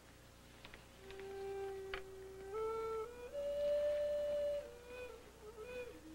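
A young woman sings in long, held notes.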